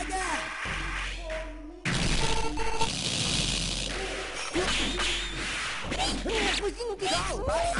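Energetic electronic music plays throughout.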